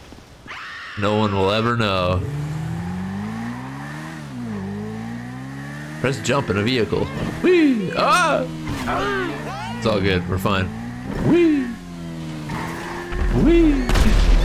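A motorbike engine revs up and down as it rides.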